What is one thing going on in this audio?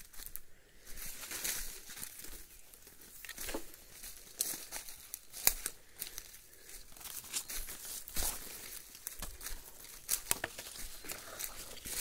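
Leaves and branches rustle as someone brushes past.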